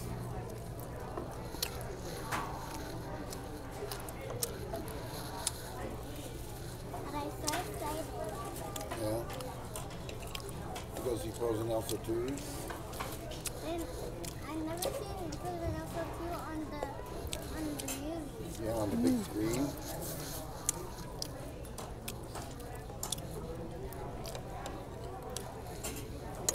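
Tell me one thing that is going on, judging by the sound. A fork and knife clink and scrape on a plate.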